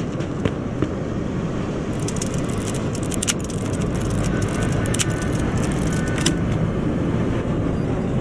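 Metal clicks and scrapes against a lock.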